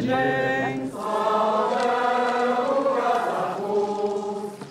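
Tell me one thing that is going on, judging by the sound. A choir sings slowly.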